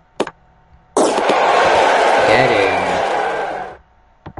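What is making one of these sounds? A crowd roars and cheers after a goal.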